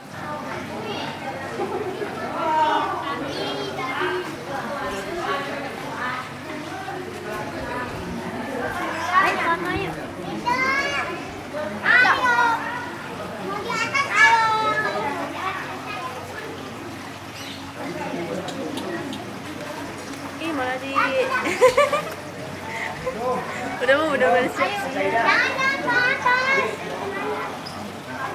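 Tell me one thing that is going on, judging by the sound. Young children chatter and call out close by.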